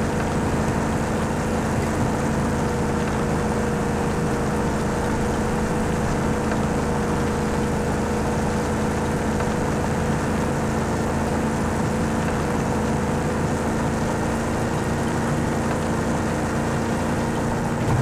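Tyres rumble over a dirt track.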